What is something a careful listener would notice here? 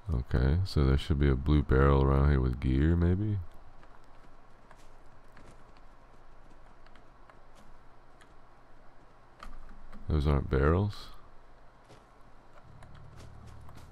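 Footsteps crunch softly on rough ground.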